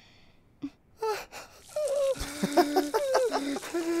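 A young man screams loudly in shock, close by.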